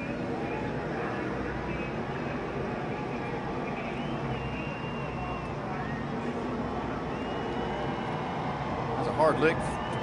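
Race car engines roar past at high speed.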